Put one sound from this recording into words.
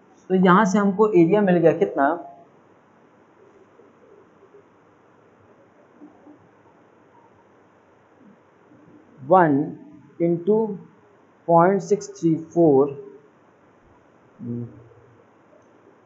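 A young man speaks calmly into a clip-on microphone, with pauses.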